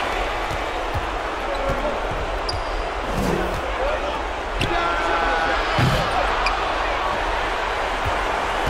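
A crowd murmurs and cheers steadily in a large arena.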